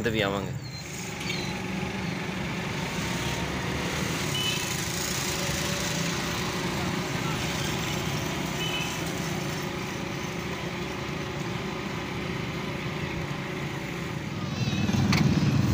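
Motorbike engines hum along a busy street outdoors.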